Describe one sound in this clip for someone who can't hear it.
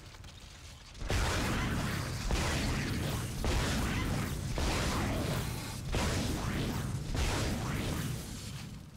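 A weapon fires repeated sharp energy shots.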